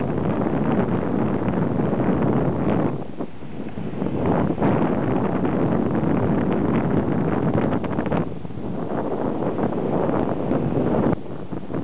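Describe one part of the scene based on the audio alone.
Waves wash onto a shore in the distance.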